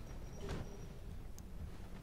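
A sword strikes a shield with a metallic clang.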